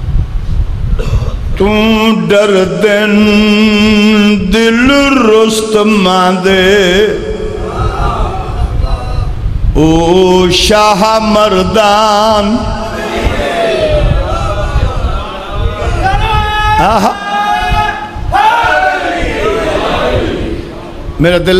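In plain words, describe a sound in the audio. A middle-aged man speaks passionately through a microphone, sometimes chanting in a drawn-out sing-song voice, in an echoing hall.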